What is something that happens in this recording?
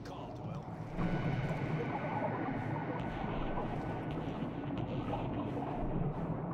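Water churns and bubbles around a diver underwater.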